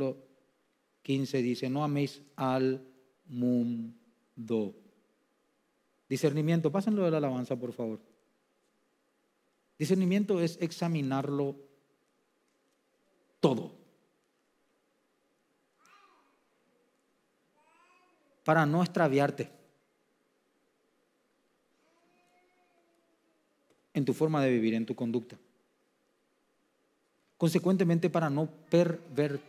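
A man speaks calmly and deliberately into a microphone, with long pauses.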